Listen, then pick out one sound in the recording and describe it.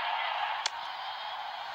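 A bat knocks a ball with a sharp crack.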